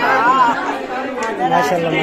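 A man chats cheerfully nearby.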